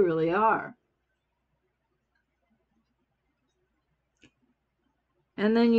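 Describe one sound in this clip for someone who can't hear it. An older woman speaks close by, in short bursts.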